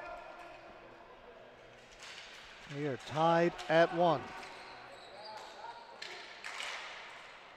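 Hockey sticks clack against a ball and each other.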